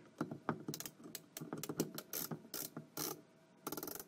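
A hand screwdriver turns a screw.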